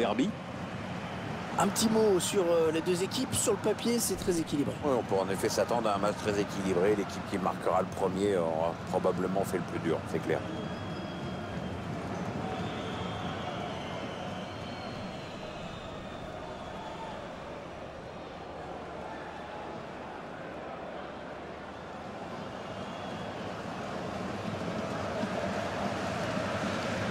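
A large stadium crowd murmurs and cheers in the open air.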